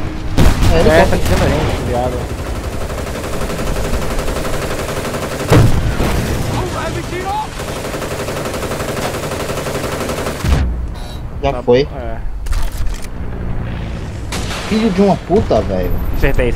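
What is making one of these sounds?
A helicopter engine drones overhead.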